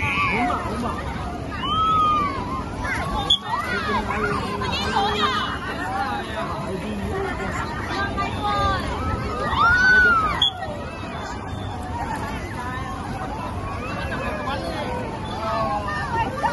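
Water splashes and sloshes steadily.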